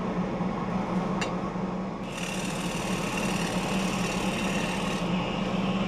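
A wood lathe hums as it spins.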